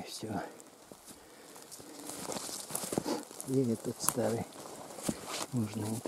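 Footsteps crunch on dry leaves and pine needles.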